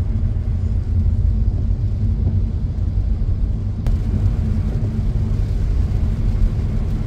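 Rain patters on a car windshield.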